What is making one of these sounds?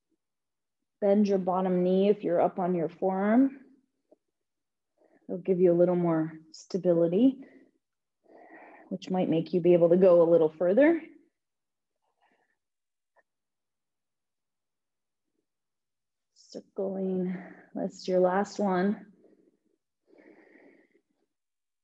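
A young woman speaks calmly into a close microphone.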